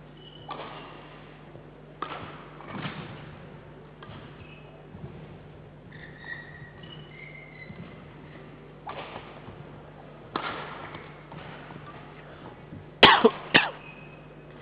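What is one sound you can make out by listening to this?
Rackets hit a shuttlecock back and forth in a large echoing hall.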